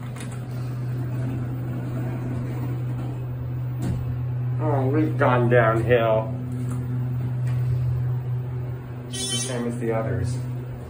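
An elevator car hums as it travels between floors.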